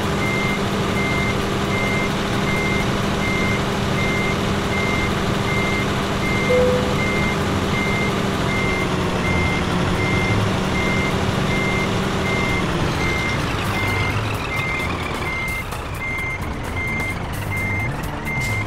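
A reversing alarm beeps at an even pace.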